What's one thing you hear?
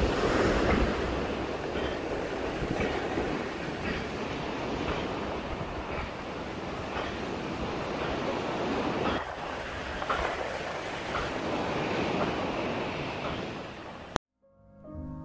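Waves break and wash up on the shore.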